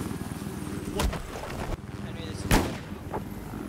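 A gun fires sharp single shots.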